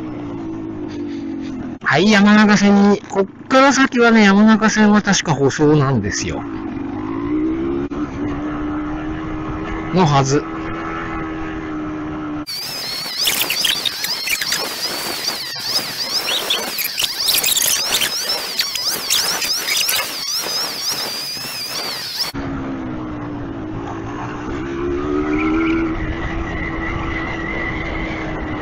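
A motorcycle engine hums close by, rising and falling in pitch.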